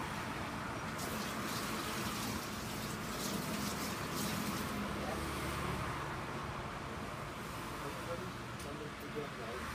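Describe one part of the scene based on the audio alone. Metal skewers clink and scrape against each other.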